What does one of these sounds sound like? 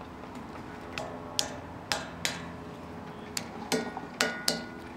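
A hand pats a metal statue with dull taps.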